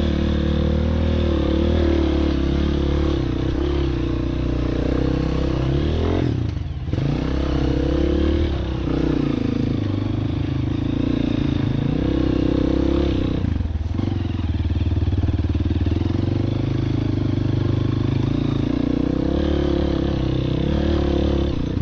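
A dirt bike engine revs loudly close by, rising and falling.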